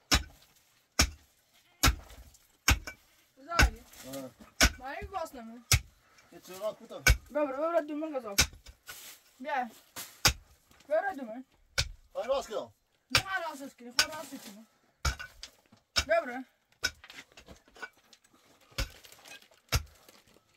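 A pickaxe strikes a block wall with sharp, repeated knocks.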